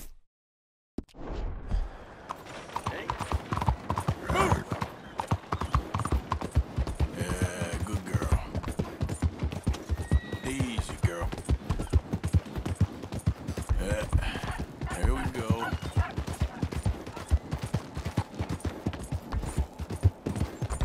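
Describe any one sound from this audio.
A horse's hooves clop steadily at a trot.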